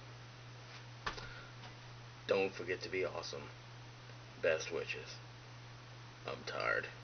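A young man speaks quietly close up.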